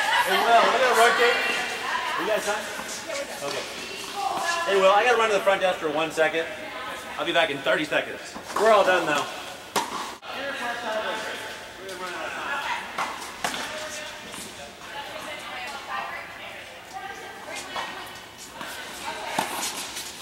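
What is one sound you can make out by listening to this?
Tennis balls pop off rackets in a large echoing indoor hall.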